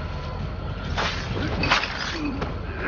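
A sword strikes in a brief scuffle.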